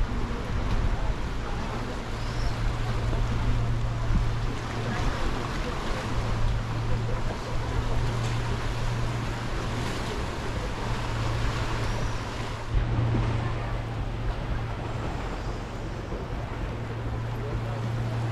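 Gentle waves lap against rocks.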